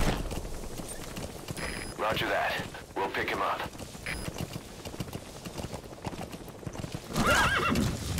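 Horse hooves thud along a dirt track at a gallop.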